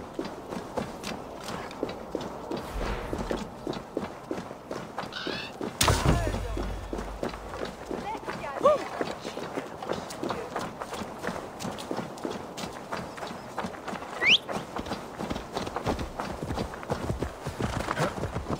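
Footsteps run over dirt and stone paths.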